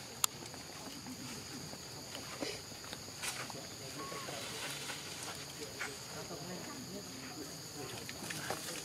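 A small monkey rustles through bamboo leaves and stems as it climbs.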